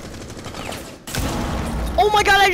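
An explosion bursts loudly nearby.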